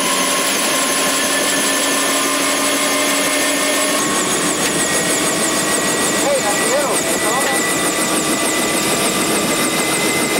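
Helicopter rotor blades thrum in a steady beat.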